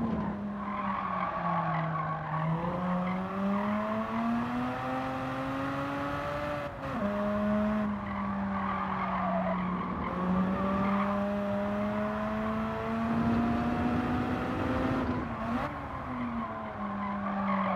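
A racing car engine roars steadily, rising in pitch as it speeds up and dropping sharply at each gear change.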